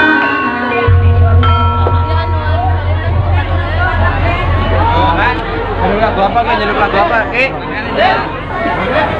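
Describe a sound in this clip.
A crowd of people chatters and calls out nearby.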